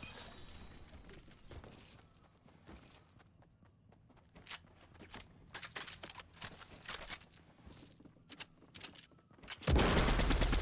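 Footsteps tap quickly on wooden floors.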